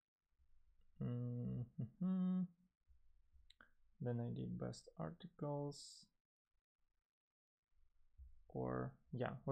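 A young man speaks calmly into a close microphone, in short phrases.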